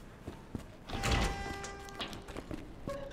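A heavy metal door swings open with a creak and clang.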